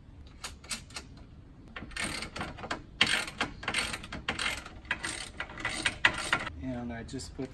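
Metal parts click and clatter.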